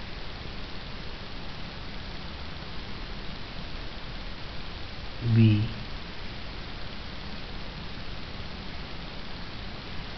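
A felt-tip marker squeaks and scratches across paper.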